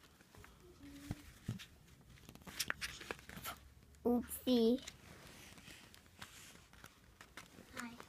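Paper pages rustle and flip as a book's pages are turned.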